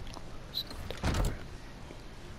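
A door swings shut with a heavy thud.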